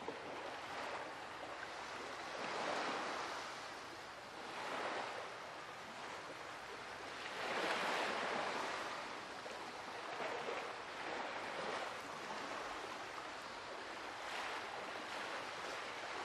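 Ocean waves wash and surge in slow, rolling swells.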